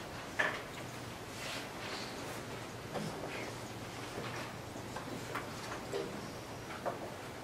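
A man speaks aloud to a room.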